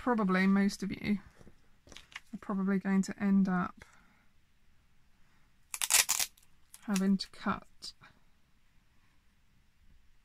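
A plastic sheet crinkles and rustles.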